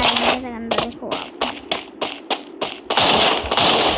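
A rifle fires a rapid series of shots.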